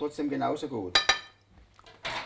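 A metal pan clanks on a stone counter.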